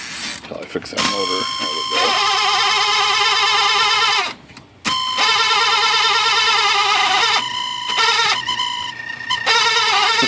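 An electric typewriter's motor hums steadily, stopping briefly partway through.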